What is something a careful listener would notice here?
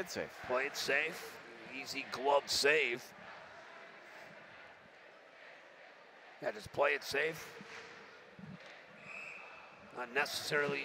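A crowd murmurs softly in a large echoing arena.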